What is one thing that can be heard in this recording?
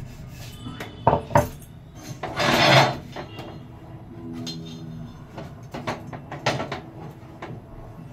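A metal pan clatters and scrapes.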